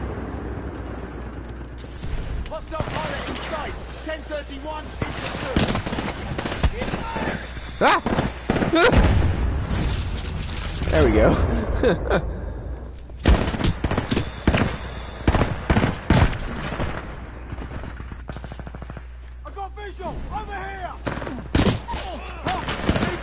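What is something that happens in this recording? Guns fire in sharp, rapid bursts.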